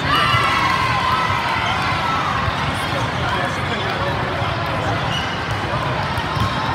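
Young women players call out to each other.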